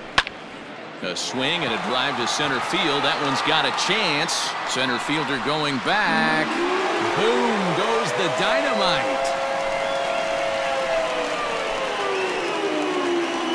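A stadium crowd roars and cheers loudly.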